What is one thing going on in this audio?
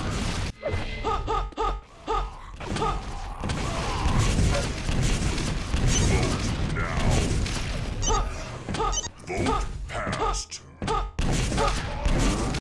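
Game sound effects chime in short pitched bursts.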